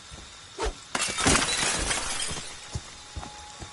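Glass shatters loudly as a window breaks.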